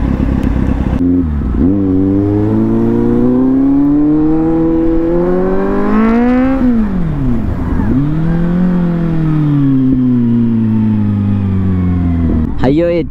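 A motorcycle engine revs up and down as the bike rides along.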